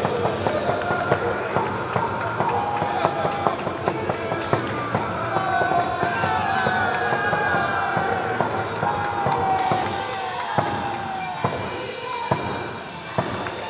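Players slap hands in high fives.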